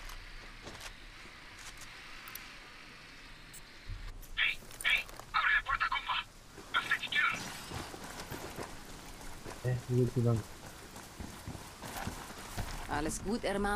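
Footsteps crunch on gravel and stone.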